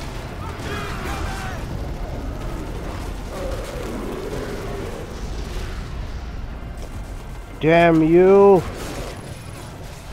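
Fiery blasts burst during a fight.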